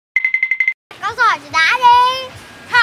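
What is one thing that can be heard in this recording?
A young boy speaks with animation close by.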